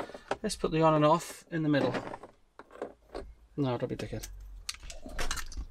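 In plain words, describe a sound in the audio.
Plastic clicks and rattles as a man works on a car dashboard.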